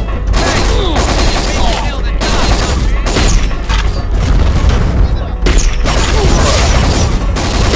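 A gun fires shots in bursts.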